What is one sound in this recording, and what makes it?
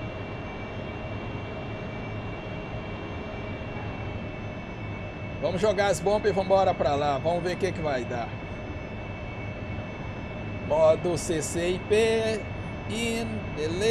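A jet engine hums steadily from inside a cockpit.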